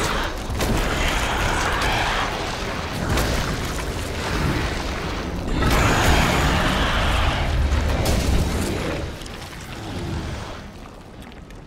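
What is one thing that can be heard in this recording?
A huge creature roars and growls loudly.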